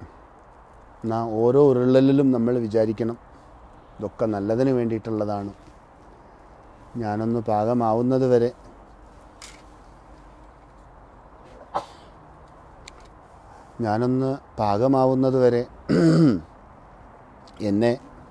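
A man chants in a steady, sing-song voice close by.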